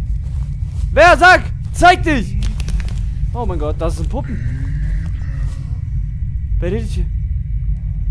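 A young man shouts loudly into a microphone in short bursts.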